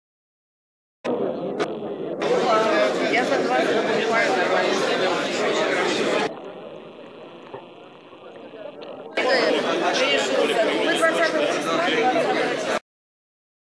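Many men and women chatter nearby.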